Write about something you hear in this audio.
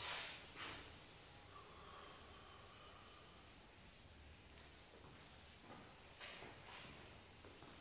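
A whiteboard eraser rubs and squeaks across a board.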